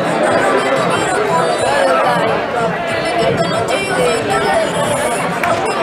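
A crowd of spectators chatters and calls out loudly outdoors.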